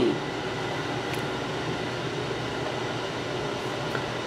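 A pot lid clinks as it is lifted.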